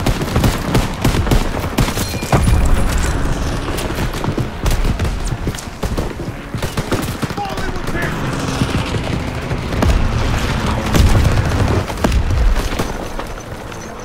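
Gunshots crack rapidly and repeatedly.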